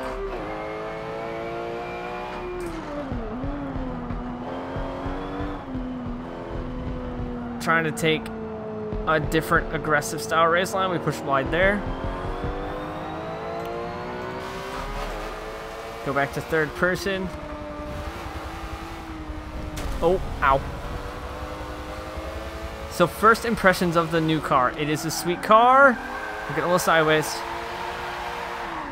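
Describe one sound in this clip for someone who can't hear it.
A car engine hums and revs up and down steadily.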